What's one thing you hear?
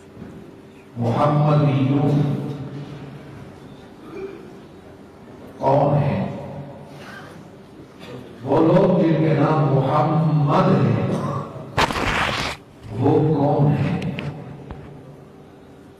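An elderly man speaks slowly and calmly into a microphone, with pauses, in a room with some echo.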